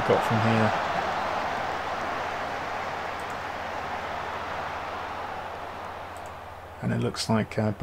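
A stadium crowd roars and slowly fades away.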